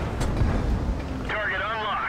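A shell explodes with a sharp bang.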